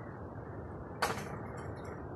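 A basketball clangs off a hoop's rim.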